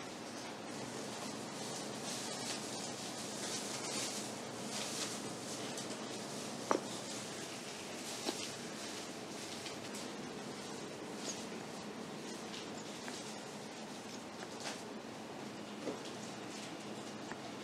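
Batter squelches softly out of a squeeze bottle.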